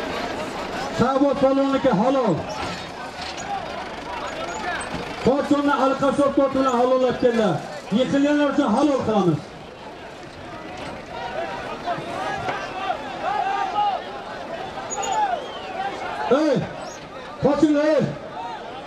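A man shouts loudly close by, in long drawn-out cries.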